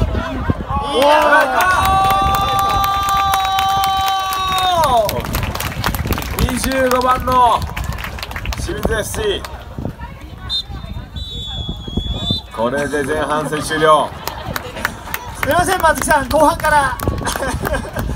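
Young players shout loudly to each other outdoors.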